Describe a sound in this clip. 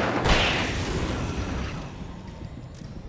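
A flare bursts with a loud crackling hiss.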